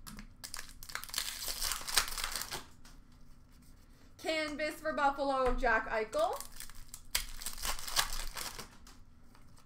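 A foil card pack crinkles and tears open in someone's hands.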